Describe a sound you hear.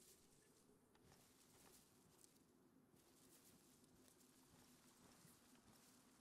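Footsteps swish through tall grass.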